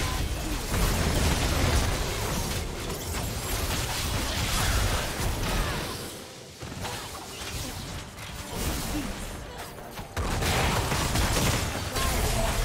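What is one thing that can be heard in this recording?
Magic blasts, zaps and clashing hits crackle in a busy fight.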